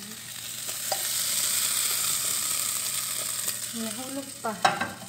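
A spatula scrapes cooked potato chunks out of a bowl.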